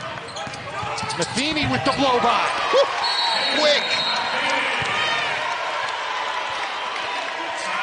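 A large indoor crowd cheers and applauds.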